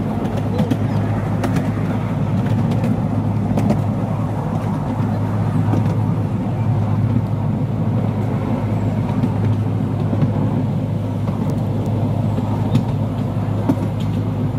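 A small train engine hums steadily as it pulls along.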